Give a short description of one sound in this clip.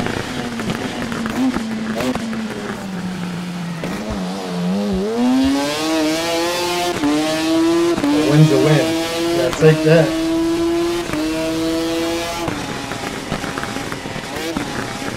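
A racing motorcycle engine roars, revving higher and shifting through gears.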